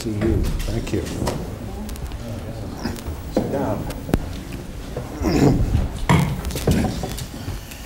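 Chairs scrape and knock as men sit down at a table.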